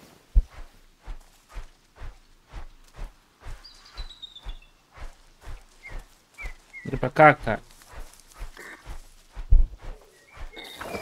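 Footsteps crunch steadily through dry leaves.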